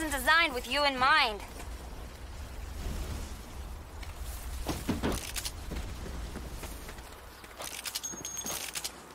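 Footsteps run over sand.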